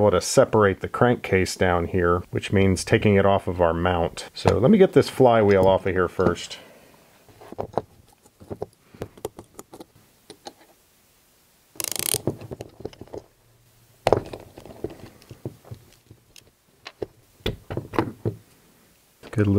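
Small metal parts click and tap against each other.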